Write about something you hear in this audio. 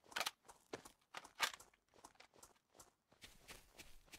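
Footsteps tramp through grass at a steady walking pace.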